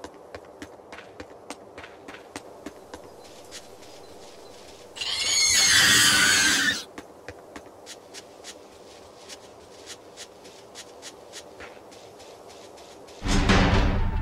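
Footsteps patter quickly on stone and grass.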